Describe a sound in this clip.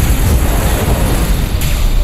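Laser guns fire in quick bursts.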